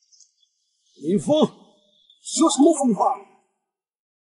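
A middle-aged man speaks sternly.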